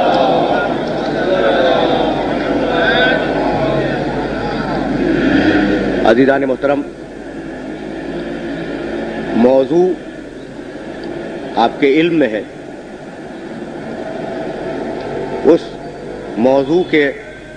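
An elderly man speaks forcefully into a microphone, in bursts with pauses.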